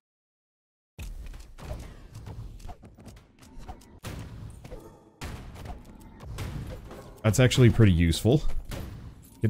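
Rapid blaster shots crackle in quick bursts.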